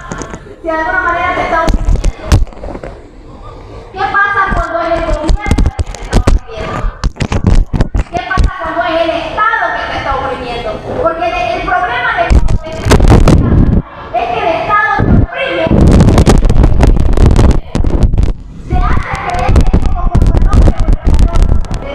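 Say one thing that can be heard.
A woman speaks with animation through a microphone and loudspeaker in a large echoing hall.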